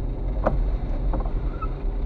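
A windscreen wiper sweeps across the glass.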